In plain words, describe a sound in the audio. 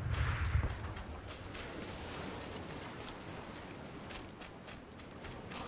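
Footsteps thud quickly on grass and dirt.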